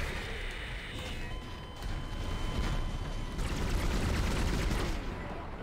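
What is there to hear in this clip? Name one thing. A weapon fires repeated energy blasts.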